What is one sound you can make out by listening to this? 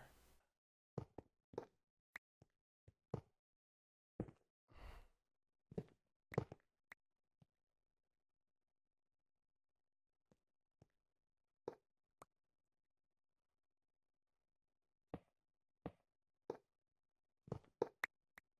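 Video game blocks are placed with short thuds.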